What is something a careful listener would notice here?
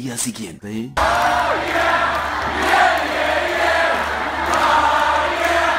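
A large crowd cheers and sings loudly in an echoing hall.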